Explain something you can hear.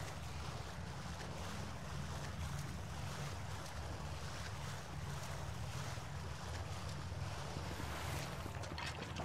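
A figure splashes and wades through water.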